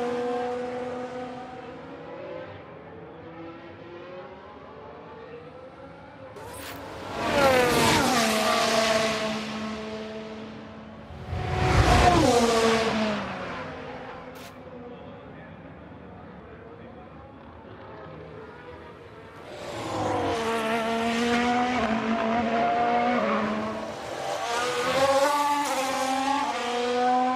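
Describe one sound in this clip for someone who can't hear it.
Racing car engines whine at high pitch, roaring loudly as cars speed close past.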